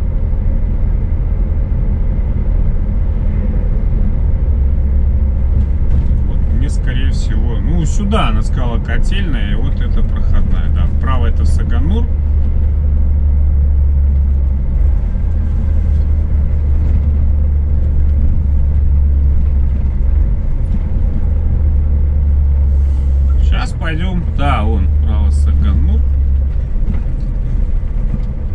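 Tyres rumble on a rough dirt road.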